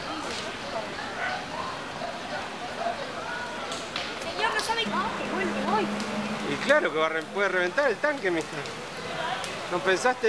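A large fire roars and crackles.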